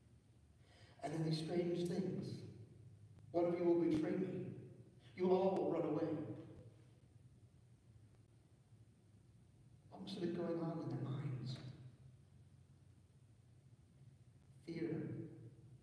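A man speaks calmly through a microphone in a large echoing hall, with pauses.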